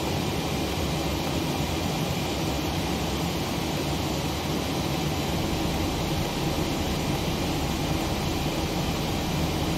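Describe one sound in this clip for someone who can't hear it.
A steady low hum of aircraft cockpit systems drones throughout.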